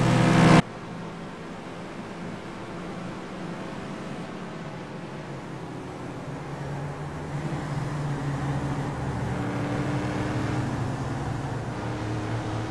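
Racing car engines roar and whine as they speed along a track.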